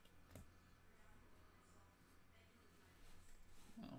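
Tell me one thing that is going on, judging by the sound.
Trading cards shuffle and tap as they are stacked.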